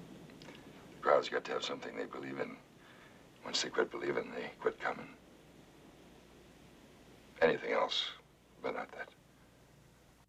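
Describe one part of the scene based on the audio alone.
A middle-aged man speaks calmly and seriously nearby.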